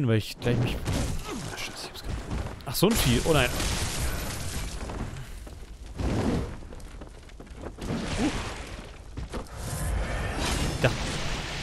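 Blades slash and strike with heavy impacts in a fight.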